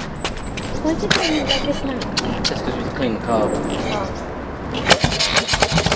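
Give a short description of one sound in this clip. A man stamps on a motorcycle's kick-starter several times.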